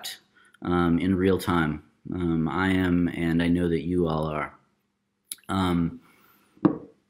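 A man speaks calmly into a microphone over an online call.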